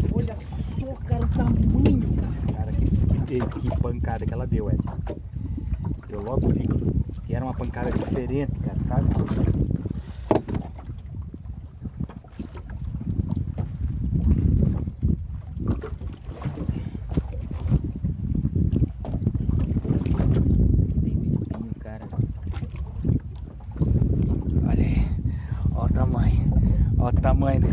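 Waves slosh against a small boat's hull.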